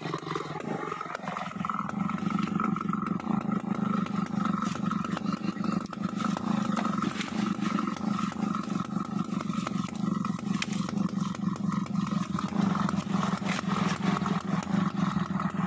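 A chainsaw idles.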